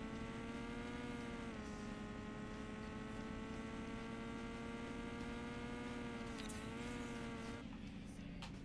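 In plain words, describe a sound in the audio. A racing car engine drones steadily, briefly dropping in pitch now and then.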